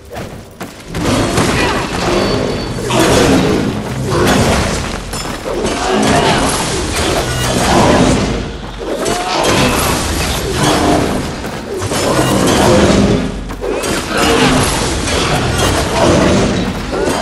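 Blades slash and clang in a fierce fight.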